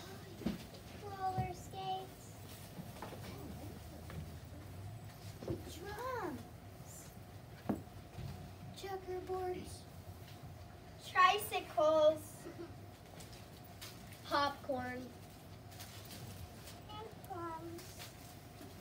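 Young girls speak lines loudly and with animation, close by.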